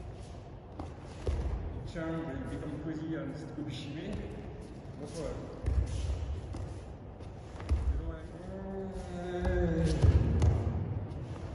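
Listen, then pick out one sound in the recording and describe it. Bodies thump onto a padded mat in a large echoing hall.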